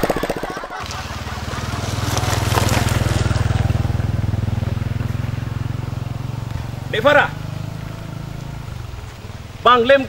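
A motorbike engine rumbles nearby, then fades away.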